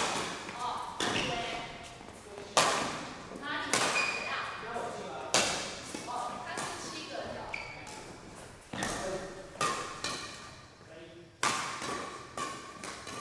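Sports shoes squeak sharply on the floor.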